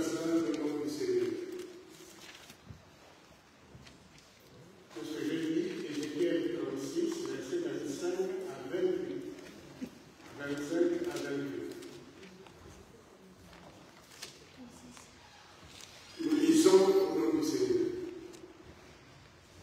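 An elderly man speaks slowly and solemnly into a microphone, with pauses, in an echoing hall.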